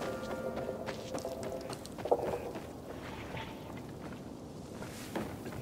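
Quick footsteps thud and scrape while running and climbing.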